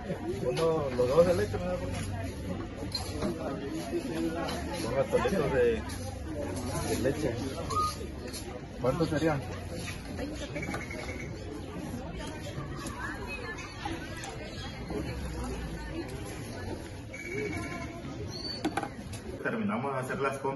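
A woman and a young man talk nearby outdoors.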